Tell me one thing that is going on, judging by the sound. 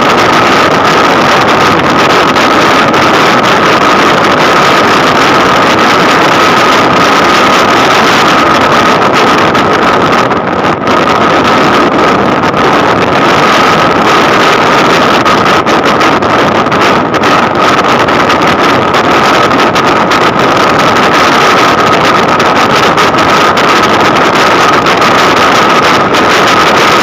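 Wind roars steadily past while driving fast.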